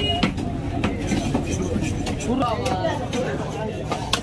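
A heavy knife chops fish on a wooden block with sharp knocks.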